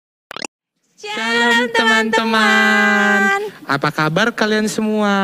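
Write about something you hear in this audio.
Two high, cartoonish voices sing together with animation.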